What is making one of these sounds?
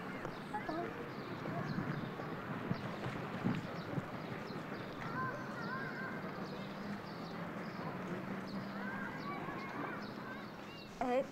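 Water splashes softly as a swimmer moves through a pool.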